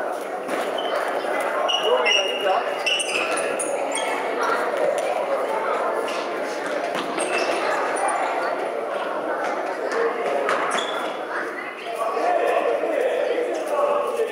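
Shoes squeak on a hard floor as children run.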